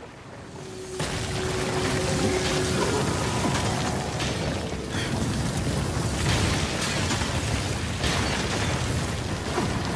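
Crystal shards burst apart with a loud roaring rush.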